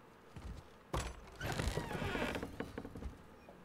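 A heavy wooden door thuds and swings open.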